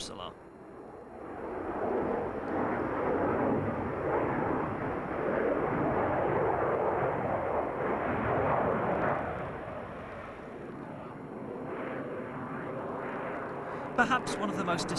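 A jet engine roars loudly overhead, swelling and fading as the plane passes.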